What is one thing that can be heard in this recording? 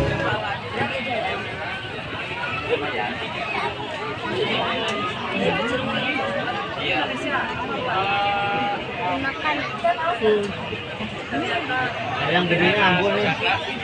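A woman talks into a microphone through a loudspeaker.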